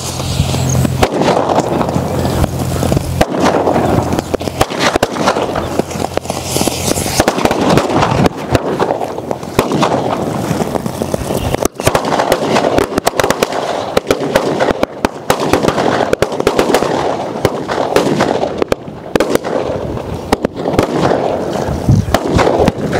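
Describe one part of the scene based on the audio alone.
Loud firecracker bangs burst now and then.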